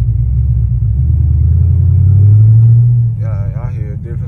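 A car engine revs up, rising in pitch, then drops back.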